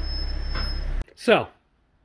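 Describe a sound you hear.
A car engine shuts off abruptly.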